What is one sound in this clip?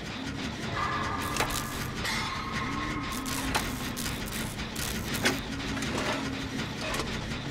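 A generator engine rattles and clanks steadily.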